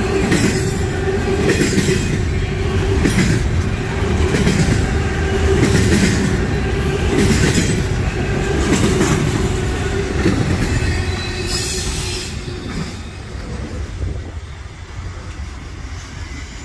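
A long freight train rumbles past close by, then fades into the distance.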